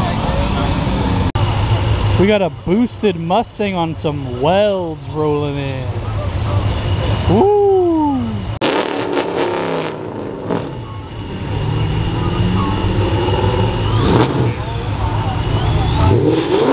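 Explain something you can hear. A car engine rumbles at idle.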